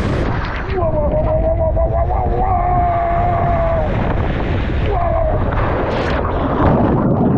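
Water rushes and splashes as a person slides down a water slide.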